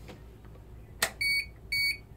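A hand presses a button on an alarm panel with a click.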